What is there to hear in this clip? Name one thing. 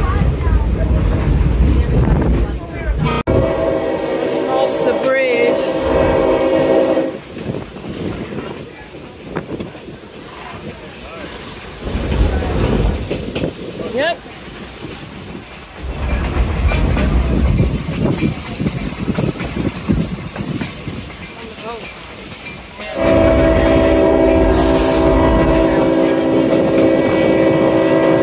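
An open train car rumbles and rattles along the tracks.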